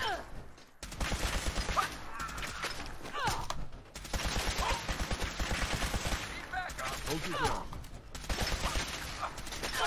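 Laser beams zap and whine.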